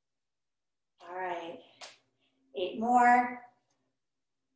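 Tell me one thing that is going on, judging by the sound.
A woman speaks with energy, as if coaching, close by.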